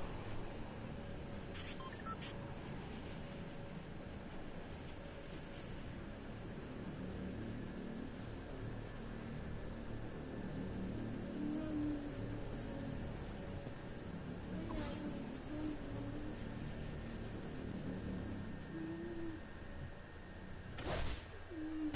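Wind rushes steadily as a game character glides through the air.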